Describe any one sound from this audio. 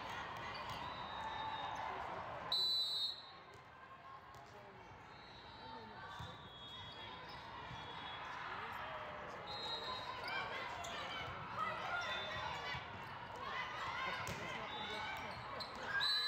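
A volleyball is hit with sharp slaps.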